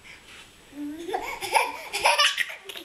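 A toddler babbles and squeals close by.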